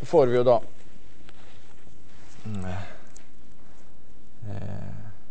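A man speaks calmly in short phrases into a microphone in a large room.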